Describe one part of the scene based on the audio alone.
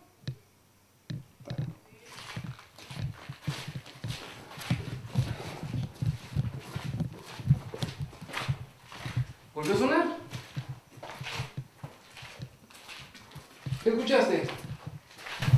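Footsteps scuff on a hard floor in an echoing empty room.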